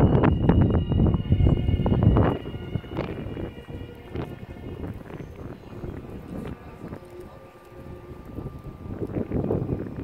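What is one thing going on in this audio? A horse's hooves thud softly on sand as it trots.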